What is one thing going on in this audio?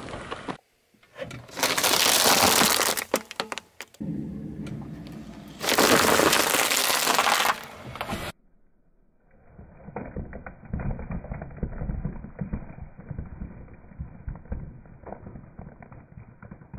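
Dry spaghetti snaps and crackles under a rolling car tyre.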